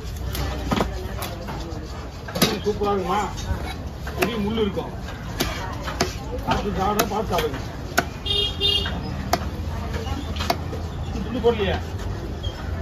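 A heavy cleaver chops with sharp thuds on a wooden block.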